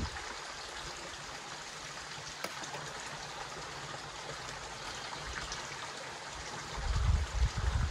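A young woman talks calmly outdoors.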